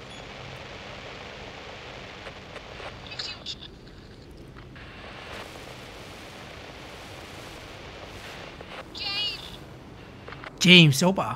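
A handheld radio hisses and crackles with static.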